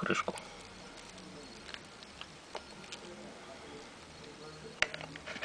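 Fingers handle a metal watch with small clicks and taps.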